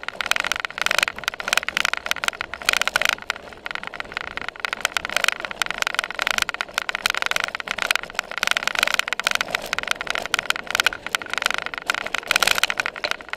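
A bicycle rattles and clatters over bumpy grass.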